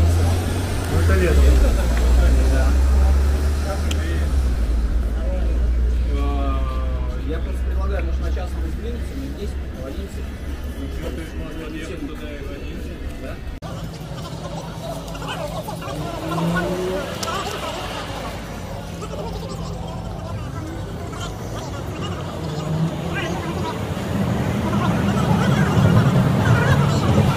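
Young men talk casually nearby outdoors.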